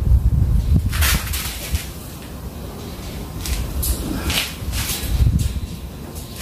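A man scrubs a rough stone wall with his hand in rasping strokes.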